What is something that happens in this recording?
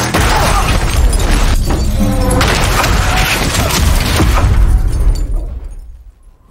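Glass shatters and sprays loudly.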